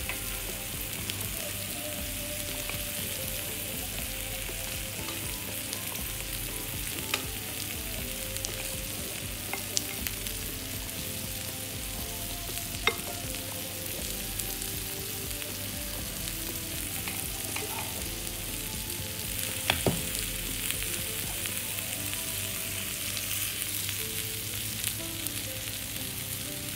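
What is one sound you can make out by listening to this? Water simmers and bubbles steadily in a pot.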